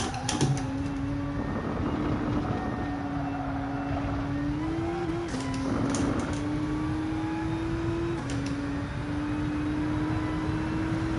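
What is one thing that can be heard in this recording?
A racing car engine drones steadily, dropping in pitch briefly as it shifts gears.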